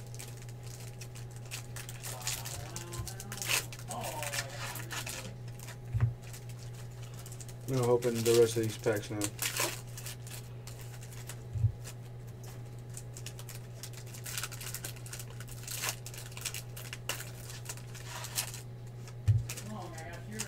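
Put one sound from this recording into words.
Foil card wrappers crinkle and tear as hands open them.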